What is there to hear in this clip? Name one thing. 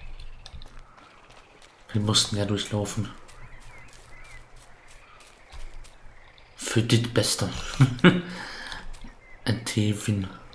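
Light footsteps tread softly on grass.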